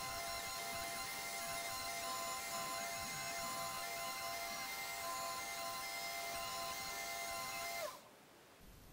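A bench grinder whirs steadily.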